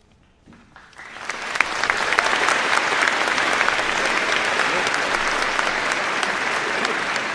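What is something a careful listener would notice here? A large crowd applauds loudly and cheers.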